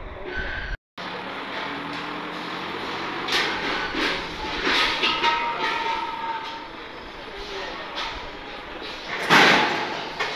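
A forklift engine runs and hums nearby.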